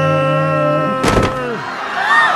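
A heavy body thuds onto the floor.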